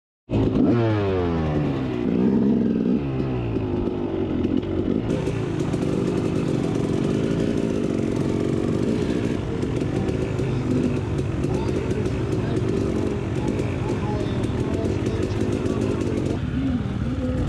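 A dirt bike engine revs up and down close by, then idles with a rough, steady rattle.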